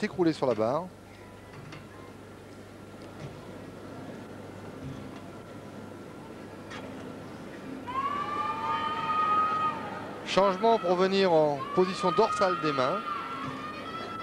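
A large crowd murmurs in an echoing hall.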